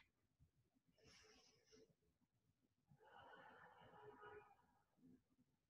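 An elderly woman speaks calmly and quietly, close by.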